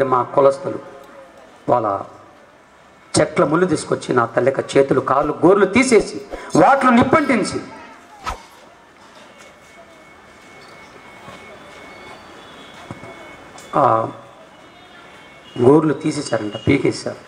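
A man speaks with animation into a microphone, heard through a loudspeaker.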